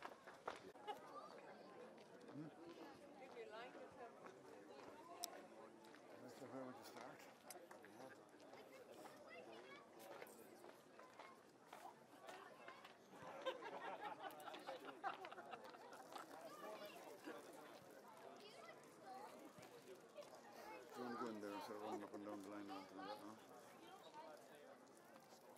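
Spectators chatter nearby outdoors.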